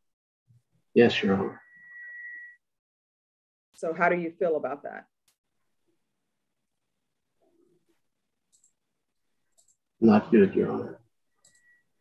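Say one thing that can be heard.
A woman speaks in short bursts over an online call.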